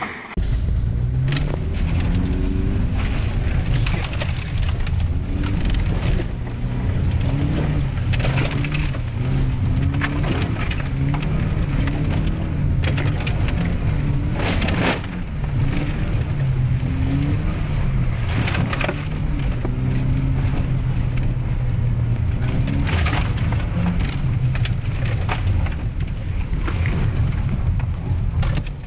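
The car jolts and thumps over rough, rutted ground.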